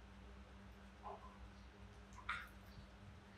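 A young monkey squeaks briefly.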